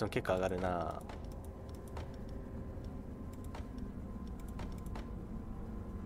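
Short interface clicks sound as a menu selection moves.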